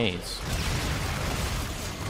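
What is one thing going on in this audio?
A gun fires in short bursts.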